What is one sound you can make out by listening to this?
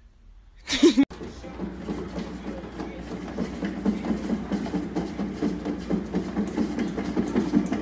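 A cat's exercise wheel rolls and rumbles steadily.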